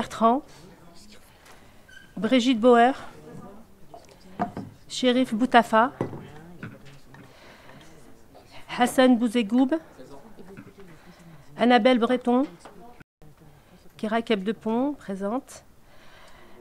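A woman speaks calmly into a microphone, in short phrases with pauses.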